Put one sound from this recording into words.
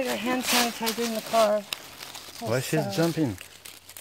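Dry leaves rustle and crackle as a hand handles them.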